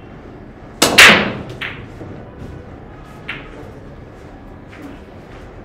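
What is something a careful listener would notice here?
Billiard balls clack together and roll across the table.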